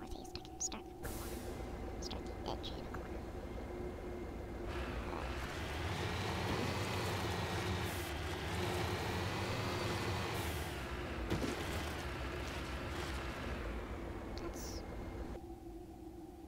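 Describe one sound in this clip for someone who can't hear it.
A vehicle's engine hums and revs up and down.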